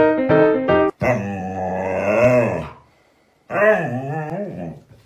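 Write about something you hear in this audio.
A husky howls and yowls in long wavering calls close by.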